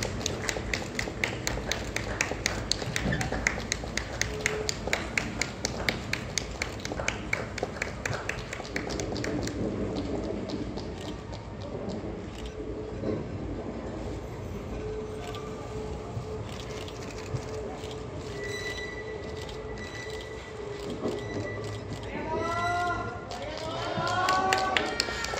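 A train rumbles slowly past and moves away.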